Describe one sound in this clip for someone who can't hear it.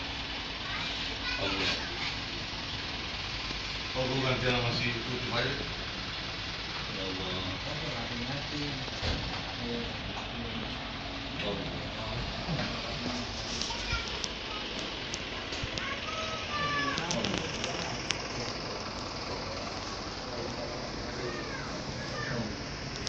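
Young men recite prayers aloud.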